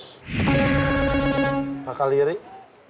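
A buzzer sounds with a loud electronic tone.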